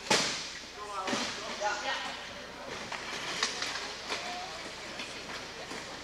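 Wheelchairs clash together with metal bangs.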